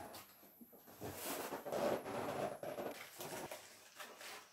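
A cardboard box scrapes and rustles as a man moves it.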